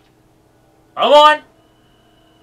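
A young man lets out a short, loud cry close to a microphone.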